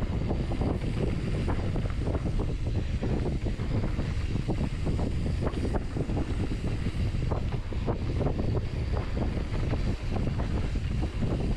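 A bike frame rattles over bumps.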